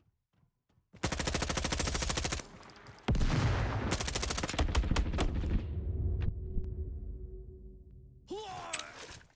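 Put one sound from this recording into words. Rapid gunfire bursts loudly and close by.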